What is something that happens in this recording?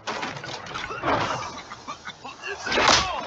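Two men cough.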